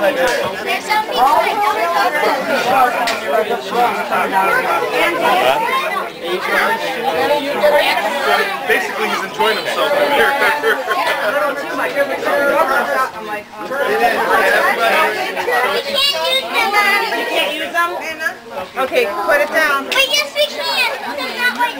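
A crowd of men and women chatters all around, close by, outdoors.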